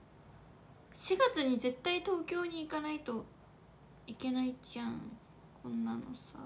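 A young woman speaks softly and close to the microphone.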